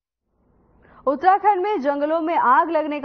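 A young woman speaks clearly, reading out.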